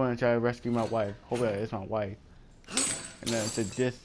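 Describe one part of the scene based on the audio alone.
Bolt cutters snap through a metal chain with a sharp clank.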